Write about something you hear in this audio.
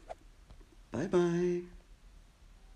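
A bear roars.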